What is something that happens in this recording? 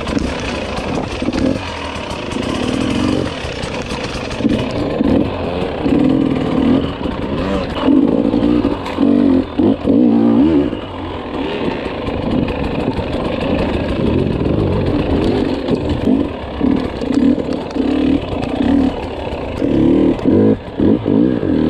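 Tyres crunch and scrape over loose rocks.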